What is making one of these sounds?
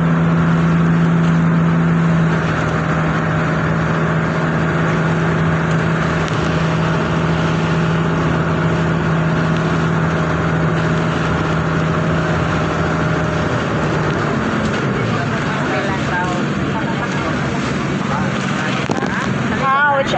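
Waves splash and spray against the hull of a moving boat.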